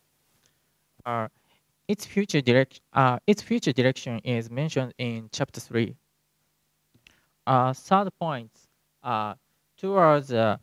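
A man speaks calmly into a microphone, heard through loudspeakers in a large hall.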